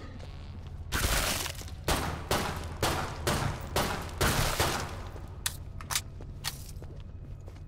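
A pistol fires single sharp shots.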